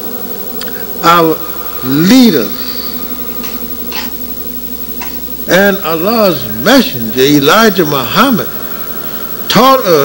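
An elderly man speaks slowly and loudly through a microphone and loudspeakers, pausing between phrases.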